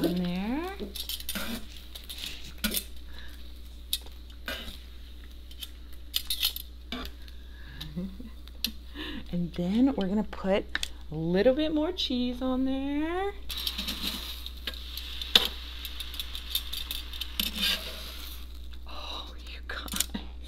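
Metal tongs click and scrape on a hot griddle.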